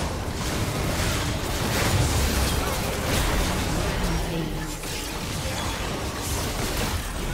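Spell effects burst and crackle in a fast game fight.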